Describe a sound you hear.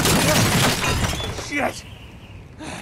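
A heavy metal structure groans and rattles loudly.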